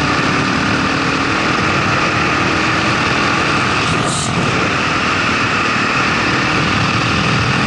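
Wind rushes past the rider at speed.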